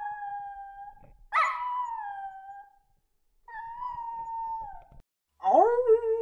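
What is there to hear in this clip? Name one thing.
Dogs howl together.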